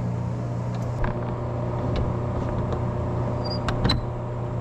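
A metal door latch clanks and clicks.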